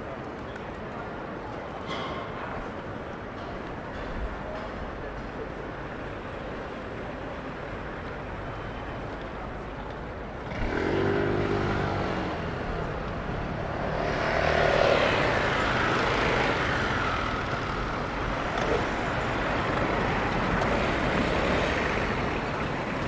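City traffic rumbles steadily outdoors.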